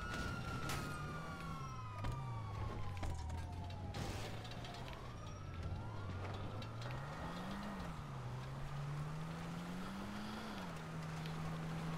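A car engine hums and revs as a car drives off.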